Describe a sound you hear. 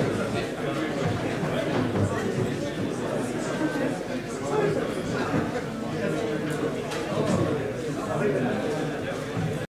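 Seats creak and thump as people get up.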